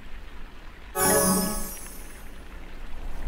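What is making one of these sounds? A bright chime plays with a short flourish.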